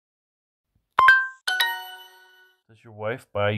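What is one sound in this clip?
A short bright chime rings out.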